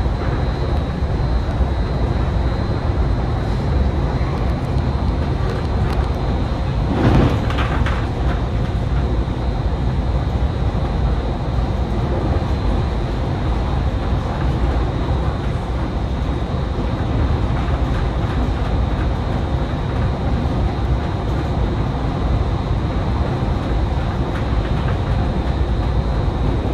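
A vehicle drives steadily along a road, its engine and tyres rumbling low.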